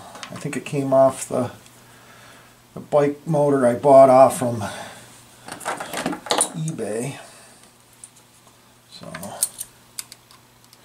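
Metal parts click and tap as a screw is worked on an engine.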